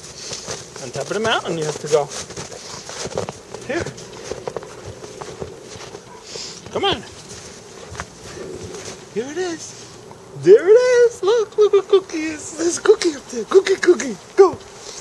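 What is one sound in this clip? A dog whines and yelps excitedly.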